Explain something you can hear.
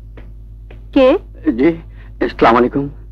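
A man speaks loudly and with animation, close by.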